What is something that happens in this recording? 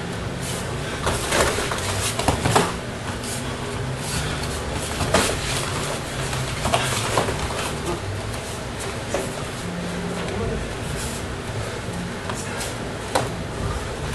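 Kicks and punches thud against padded body protectors.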